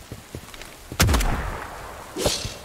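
A gun fires a sharp shot.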